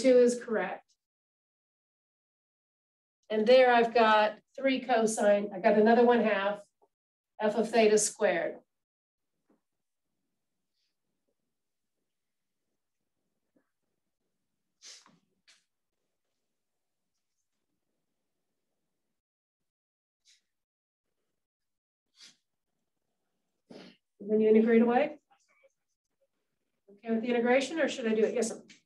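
A woman lectures calmly, pausing now and then.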